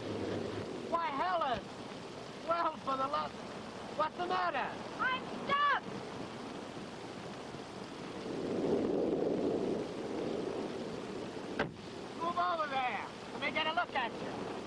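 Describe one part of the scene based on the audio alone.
A young woman talks inside a car.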